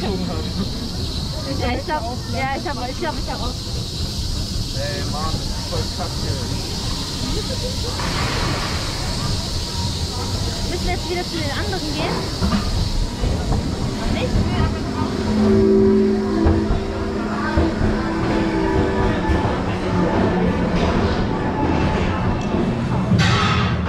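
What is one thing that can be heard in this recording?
A roller coaster train rattles and clatters along its track.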